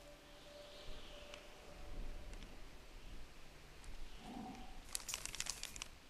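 Paper rustles as a hand picks up a folded note.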